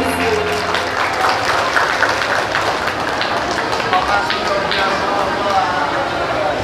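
A young girl sings through a microphone and loudspeakers.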